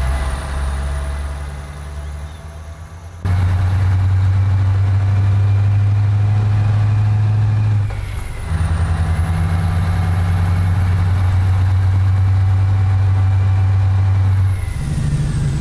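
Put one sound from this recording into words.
A truck engine drones steadily, dropping and rising again as gears change.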